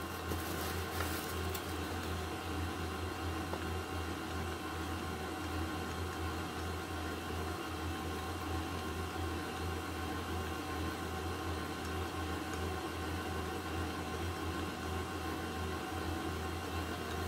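A stand mixer whirs steadily as it beats.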